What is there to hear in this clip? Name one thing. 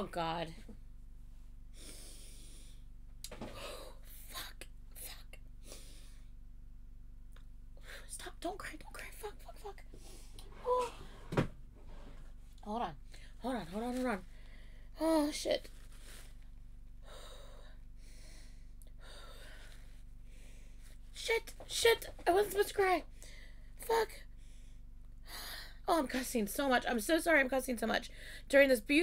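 A young woman talks emotionally close to a microphone, her voice breaking.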